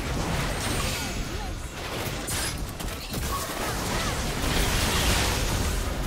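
Magic spells whoosh and crackle during a fast battle.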